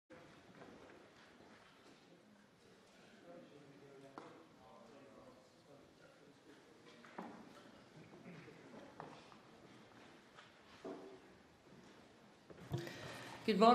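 A crowd of people murmurs quietly in a large echoing hall.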